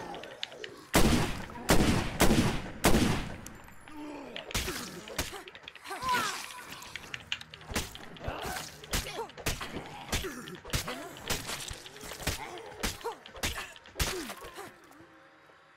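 Blows land with heavy thuds in a fight.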